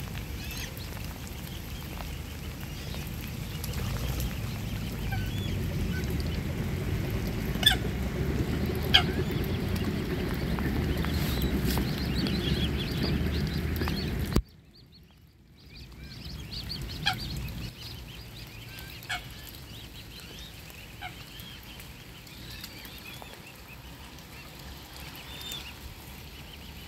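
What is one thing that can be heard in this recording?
Cygnets peep softly and often, close by.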